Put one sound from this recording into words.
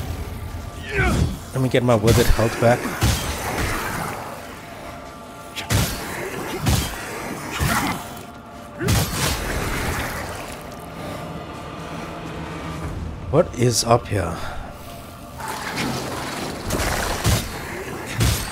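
Blades swing and strike with sharp impacts.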